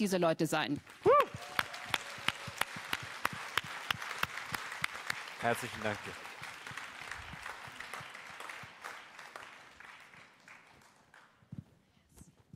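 An audience claps and applauds, then fades.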